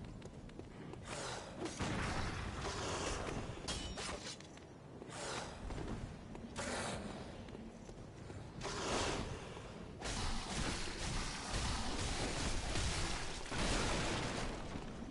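Blades slash and strike flesh in a fight.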